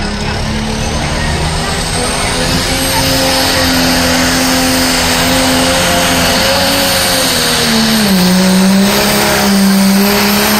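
A pulling tractor's diesel engine roars loudly at full throttle, its pitch wavering.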